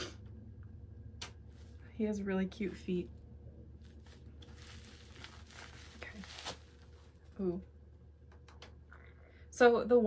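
Plastic wrapping rustles and crinkles.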